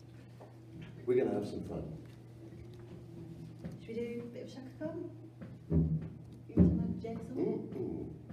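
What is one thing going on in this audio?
A young woman speaks into a microphone.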